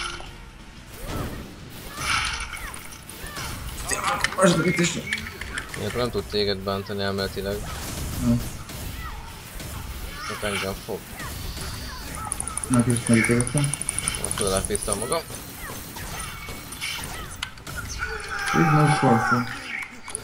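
Sword strikes clang in a game fight.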